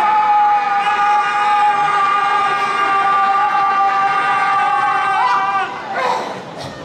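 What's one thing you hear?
A man and a woman sing a long, held note together through loudspeakers.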